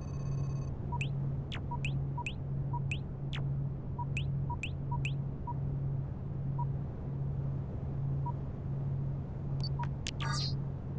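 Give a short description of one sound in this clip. Short electronic interface blips sound as game menu items are selected.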